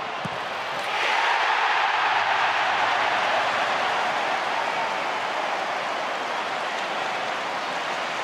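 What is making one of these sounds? A stadium crowd erupts in a loud roar of cheering.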